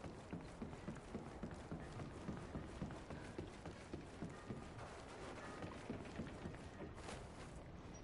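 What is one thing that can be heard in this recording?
Footsteps thud quickly on wooden boards.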